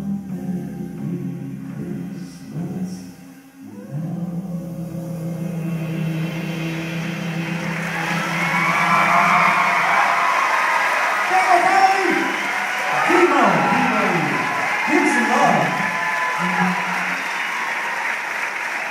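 A saxophone plays.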